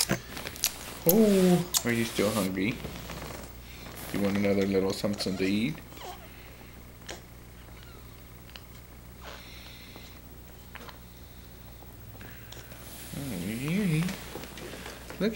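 A man speaks softly up close.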